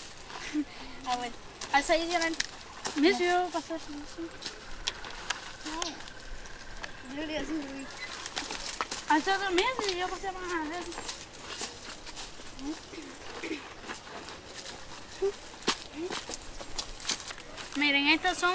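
Young girls talk and call out to each other nearby.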